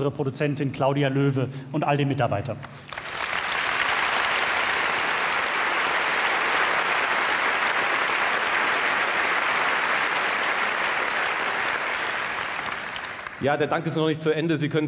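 A man speaks calmly into a microphone on a stage.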